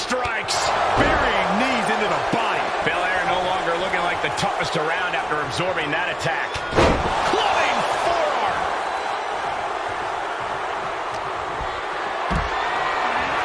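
Bodies slam heavily onto a wrestling ring mat with loud thuds.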